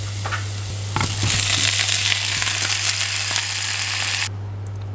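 Cabbage leaves sizzle and crackle loudly in a pan.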